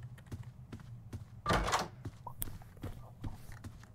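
A door swings open with a thud.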